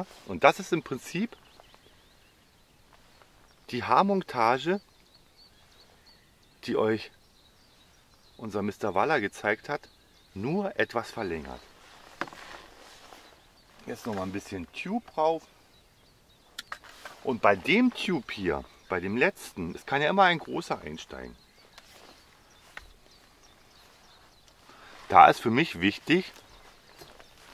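A middle-aged man talks calmly and explains close to a microphone, outdoors.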